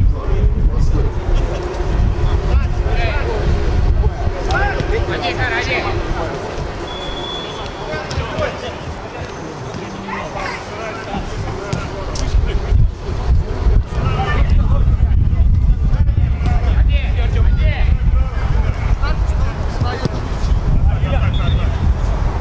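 Men shout and call to each other across an open outdoor pitch.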